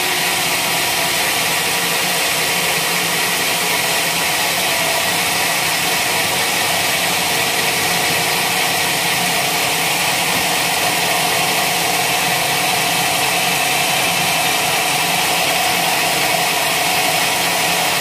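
A band saw cuts steadily through a log with a loud, whining hum.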